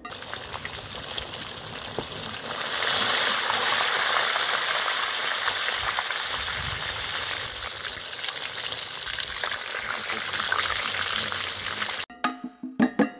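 Hot oil sizzles and bubbles loudly as food fries.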